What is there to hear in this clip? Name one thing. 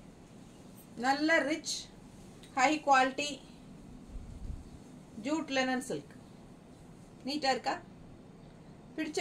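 A middle-aged woman speaks calmly and close by, in short phrases.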